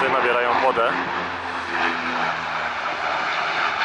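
A small propeller plane drones past overhead, its pitch dropping as it moves away.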